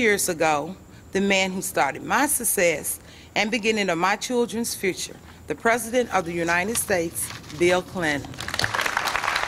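A woman speaks into a microphone, reading out calmly.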